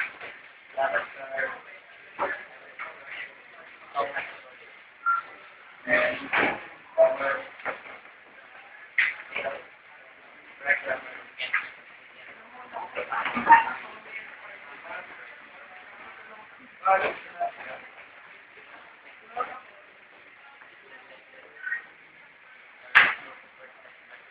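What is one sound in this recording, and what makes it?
A boy talks nearby in a room, pausing often.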